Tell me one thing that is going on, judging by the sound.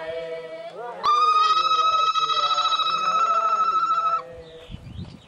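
A woman ululates in a high, loud, steady trill.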